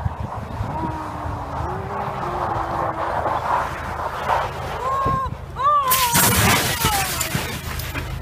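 A car engine revs loudly as the car slides on snow.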